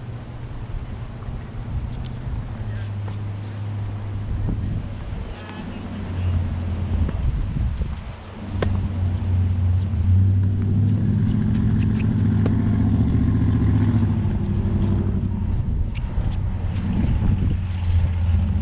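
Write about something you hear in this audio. A tennis ball is struck with a racket and bounces on a hard court.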